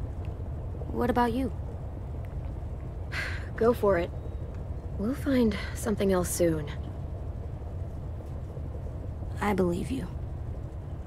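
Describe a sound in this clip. A young woman speaks quietly.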